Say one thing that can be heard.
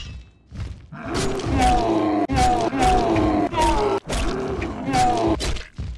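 A large beast growls and roars close by.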